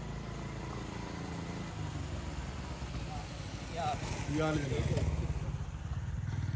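A motorbike engine drones past close by.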